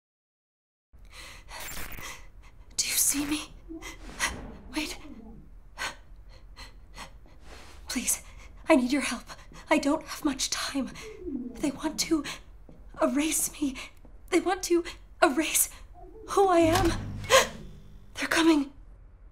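A young woman speaks close up, softly and pleadingly.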